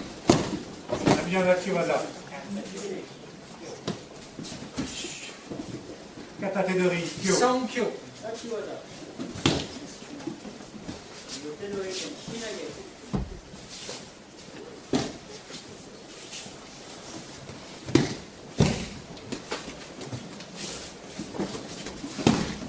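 Bare feet shuffle and slap on a mat.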